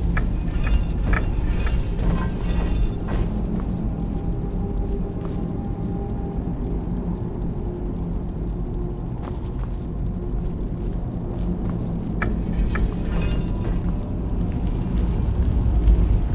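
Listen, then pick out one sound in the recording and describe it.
Magic flames crackle and hiss softly close by.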